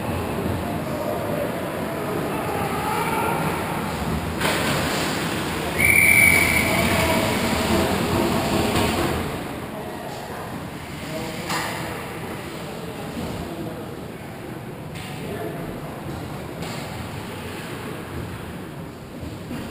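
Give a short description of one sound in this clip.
Skates scrape and hiss across the ice in a large echoing rink.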